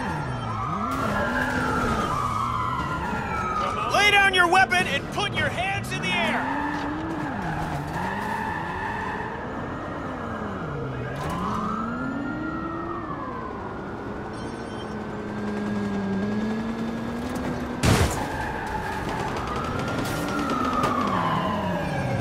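A car engine revs up and down as a sports car drives.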